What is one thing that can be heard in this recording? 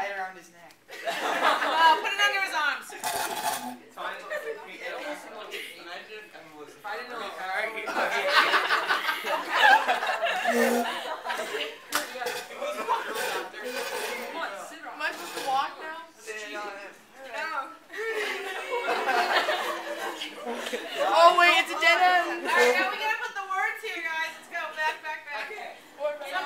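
Teenagers laugh loudly close by.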